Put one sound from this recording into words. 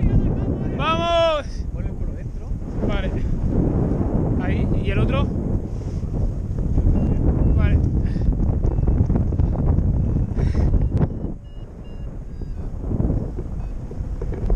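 Wind rushes loudly past a microphone outdoors.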